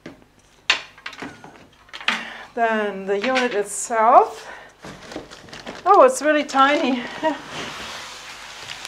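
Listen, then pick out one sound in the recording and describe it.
Cardboard rustles and knocks as a box is handled.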